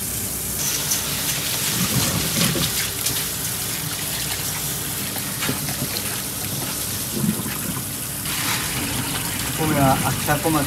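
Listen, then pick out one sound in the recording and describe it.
Hands swish and rub rice in water.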